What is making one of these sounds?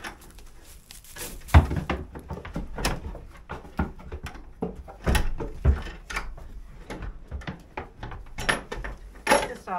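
A goat's hooves tap and scuffle on wood and straw nearby.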